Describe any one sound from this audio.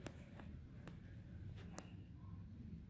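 A dog's claws click lightly on the floor.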